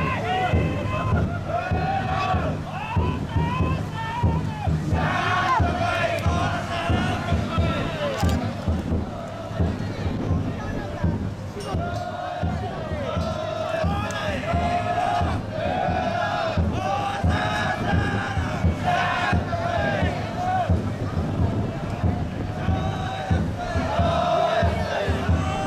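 A crowd murmurs and calls out nearby.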